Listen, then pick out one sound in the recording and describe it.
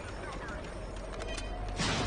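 A blaster rifle fires a shot.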